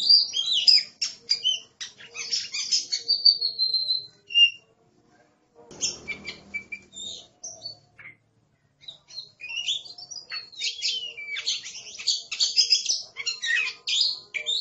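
A songbird sings a loud, varied song of whistles and chirps, close by, with short pauses.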